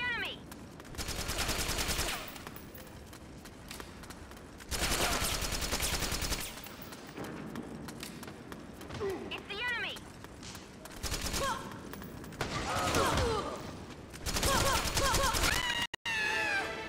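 Gunfire rattles in short rapid bursts.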